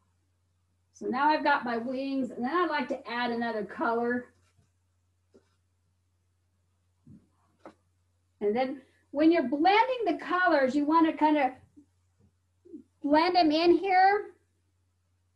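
A middle-aged woman talks calmly close to a microphone.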